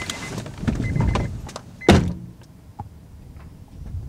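A car door opens and thuds shut.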